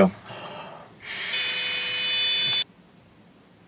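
A young man blows steadily into a breath tester.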